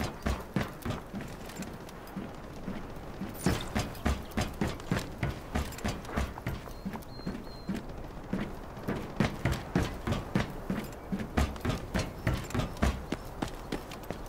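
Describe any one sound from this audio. Footsteps thud quickly on metal.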